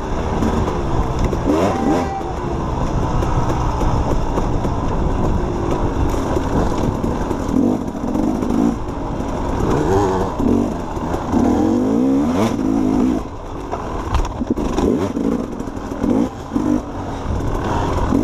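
A dirt bike engine revs and drones up close, rising and falling in pitch.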